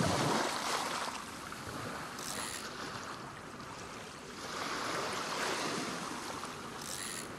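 A fishing reel clicks as it turns.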